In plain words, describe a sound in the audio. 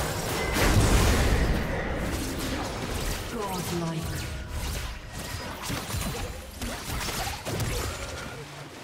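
Magic blasts and weapon hits crackle and boom in a battle.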